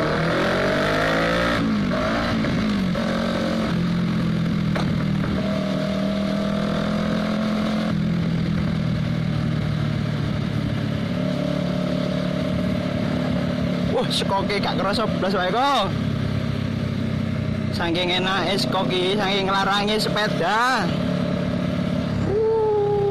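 A motorcycle engine hums steadily while riding, with the pitch shifting as it speeds up and slows down.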